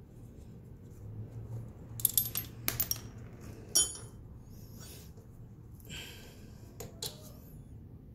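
A spanner clicks as it turns a bolt.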